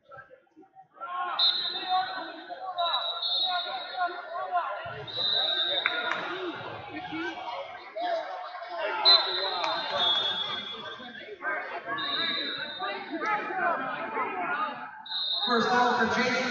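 A crowd of people chatter and shout in a large echoing hall.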